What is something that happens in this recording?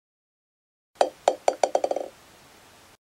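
A ball bounces several times, faster and faster, until it settles.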